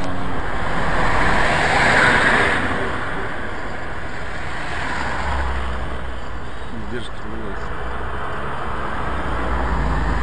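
A car engine hums as the car slowly pulls away.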